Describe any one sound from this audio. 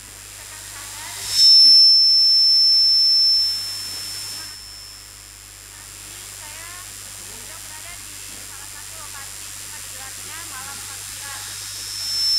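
A young woman speaks faintly over an online call, outdoors.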